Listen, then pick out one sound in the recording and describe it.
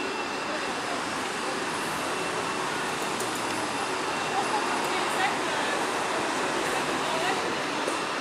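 A city bus engine rumbles close by.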